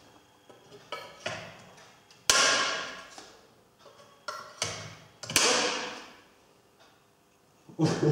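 Metal tools clank and strike sharply on metal, with a ringing echo.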